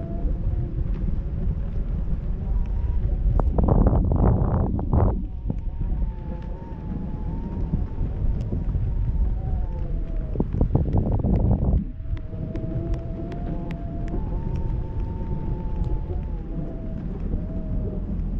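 Wind rushes past steadily, outdoors high in the air.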